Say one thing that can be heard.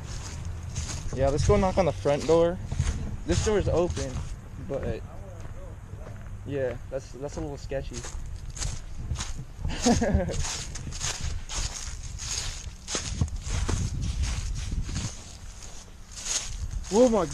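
A young man talks close to the microphone with animation.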